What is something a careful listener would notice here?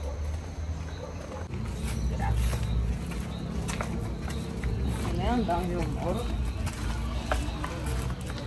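Footsteps scuff along a concrete path.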